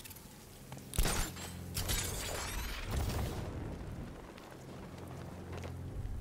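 Wind rushes loudly past a gliding figure.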